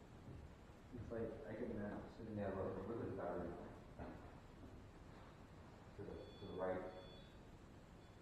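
A man speaks quietly in an echoing room.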